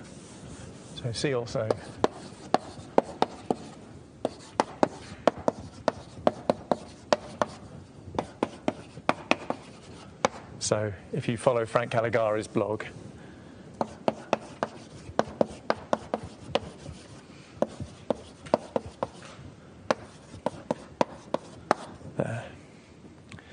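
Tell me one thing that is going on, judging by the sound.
Chalk taps and scratches sharply on a blackboard.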